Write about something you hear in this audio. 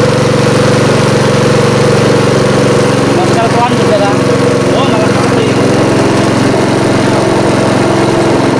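A small petrol engine runs loudly and steadily close by.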